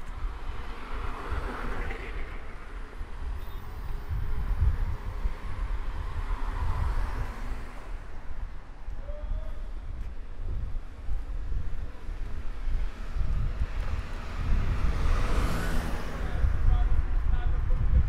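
Cars swoosh past on a nearby road.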